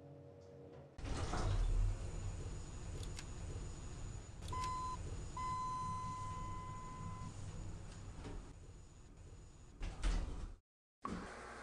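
Outdoor noise drifts in through the open elevator doors.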